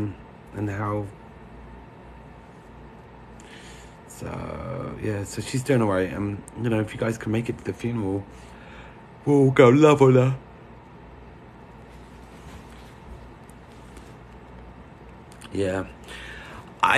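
A man talks with animation, close to a phone microphone.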